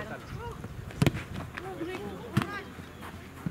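A soccer ball thumps as it is kicked.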